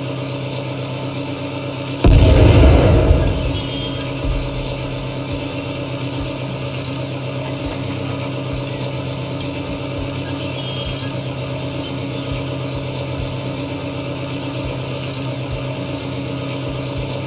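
A tank engine idles with a steady low rumble.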